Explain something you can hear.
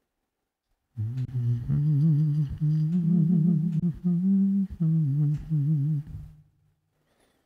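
An electric guitar plays a loud melody with bending notes.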